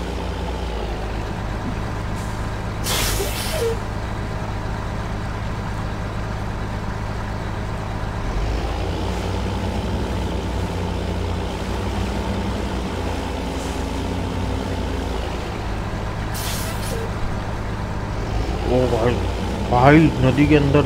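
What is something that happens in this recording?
Water splashes and churns around tractor wheels.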